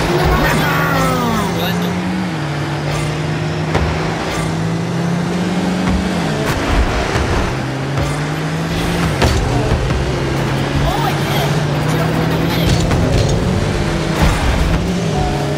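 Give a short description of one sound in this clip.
Car engines hum steadily, shifting pitch as they speed up and slow down.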